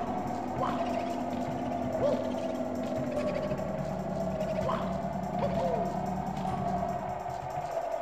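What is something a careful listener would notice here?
Eerie video game music plays steadily.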